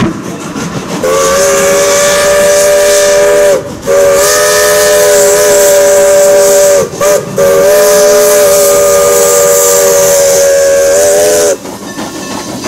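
A steam whistle blows loud and long in several blasts.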